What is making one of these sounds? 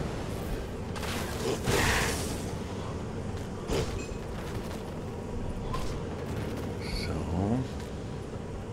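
Magical blasts whoosh and burst in short loud bursts.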